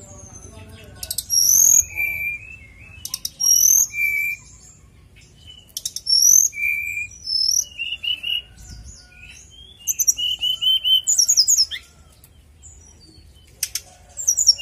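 A sooty-headed bulbul sings short whistled phrases outdoors.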